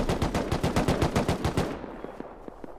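A tool knocks rapidly against a wall.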